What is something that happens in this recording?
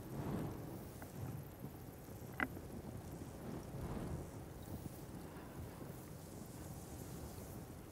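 Wind blows softly through leaves outdoors.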